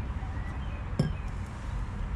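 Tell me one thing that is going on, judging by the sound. A metal bottle is set down on wooden boards with a knock.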